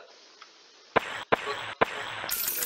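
Short electronic menu clicks sound as selections change.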